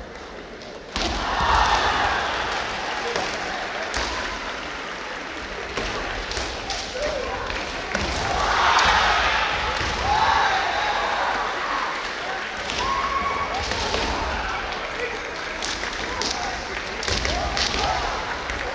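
Fencers shout loudly and sharply in a large echoing hall.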